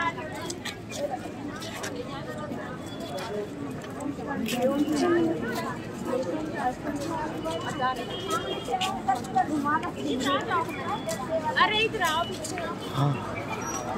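A crowd of men and women chatters and calls out close by.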